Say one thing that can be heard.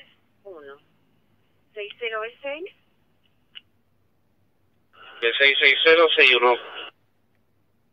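A voice speaks in short bursts over a two-way radio, thin and crackly.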